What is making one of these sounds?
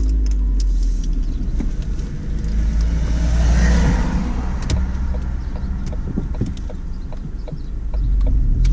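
A car engine hums steadily from inside the car.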